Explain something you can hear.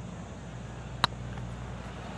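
A golf club taps a ball with a sharp click.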